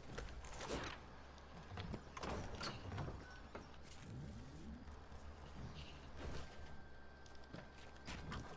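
Wooden boards knock and clatter as walls are put up in quick bursts.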